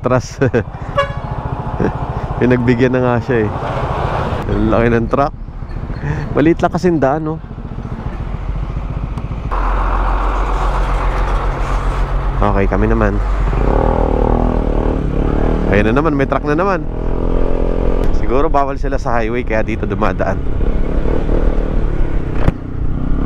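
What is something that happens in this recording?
An adventure motorcycle engine hums while riding at low speed.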